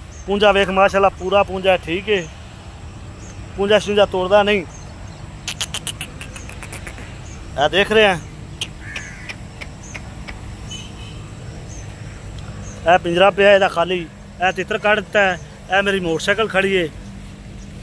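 A chicken squawks loudly and repeatedly close by.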